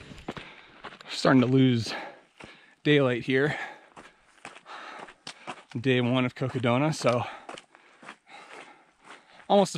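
Footsteps crunch on a gravel trail.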